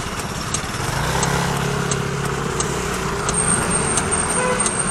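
A motor scooter engine hums as it passes close by.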